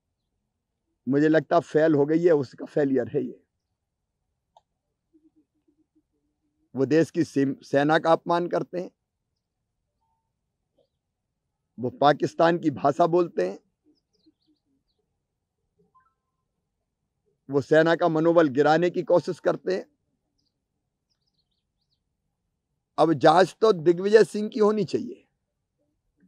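A middle-aged man speaks calmly and firmly into a microphone close by, in short bursts with pauses.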